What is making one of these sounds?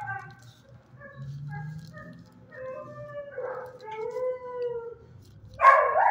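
A dog whimpers softly.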